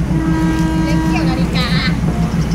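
A train horn blares loudly for a moment.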